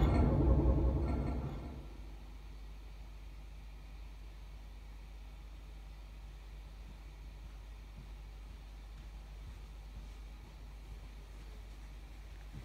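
A low electronic hum drones steadily.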